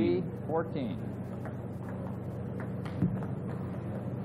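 A table tennis ball clicks sharply against paddles and the table in a quick rally.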